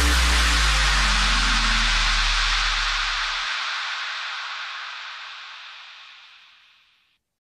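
Waves crash and roar, then slowly fade away.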